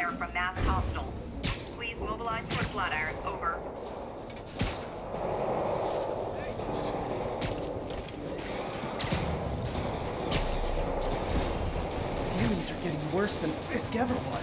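Wind rushes past as a figure swings fast between tall buildings.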